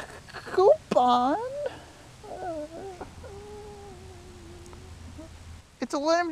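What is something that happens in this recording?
A young man speaks close by with strained, drawn-out words.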